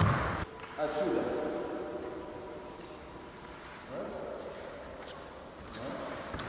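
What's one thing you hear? A man speaks calmly in a large echoing hall.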